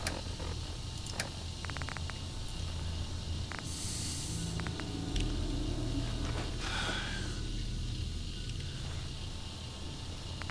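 Soft electronic menu clicks tick in quick succession.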